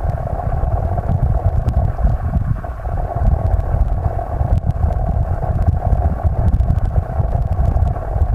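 Water rushes and gurgles underwater over stones in a stream, heard close and muffled.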